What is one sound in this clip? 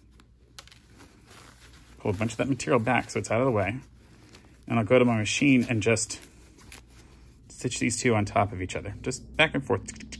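Stiff paper crinkles softly as it is bent.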